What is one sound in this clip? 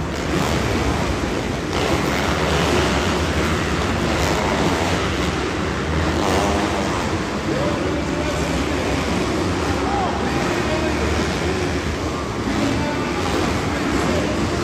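Dirt bike engines roar and rev loudly.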